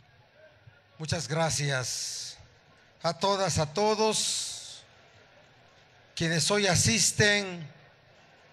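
A man speaks forcefully into a microphone, his voice carried over a loudspeaker.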